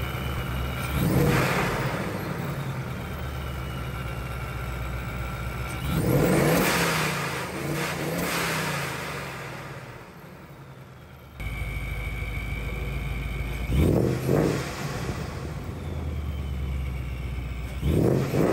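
A car engine revs sharply and roars, then drops back.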